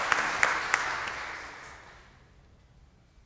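A pipe organ chord sounds loudly and dies away in a large echoing hall.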